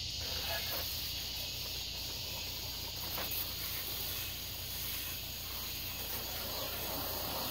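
Water sprays from a garden hose and splashes onto a vehicle.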